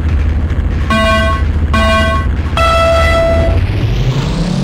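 Start beeps sound three times, the last one longer.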